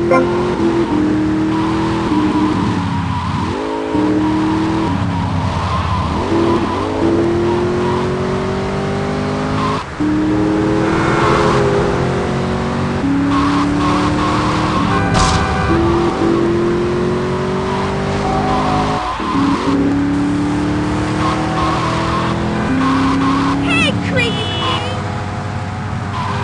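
A car engine revs loudly and climbs in pitch as the car speeds up, then drops with each gear change.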